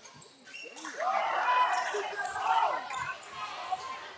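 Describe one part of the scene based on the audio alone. A crowd in an echoing gym cheers and shouts.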